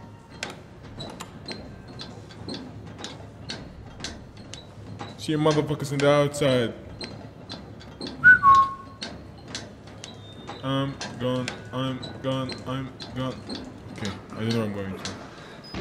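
Hands and feet clank on the rungs of a metal ladder.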